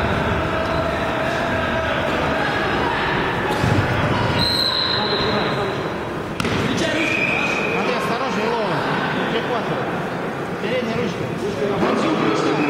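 A crowd of spectators talks and calls out in a large echoing hall.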